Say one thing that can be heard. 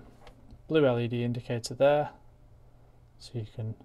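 A small plug clicks into a socket.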